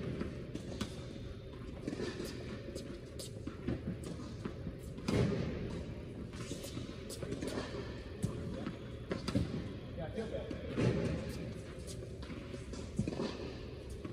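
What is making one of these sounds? Tennis balls are struck with rackets, echoing in a large hall.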